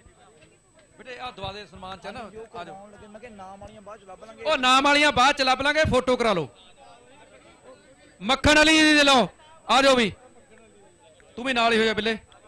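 A man shouts loudly through a microphone over loudspeakers.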